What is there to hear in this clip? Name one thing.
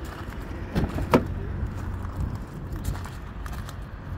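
A car door unlatches and swings open.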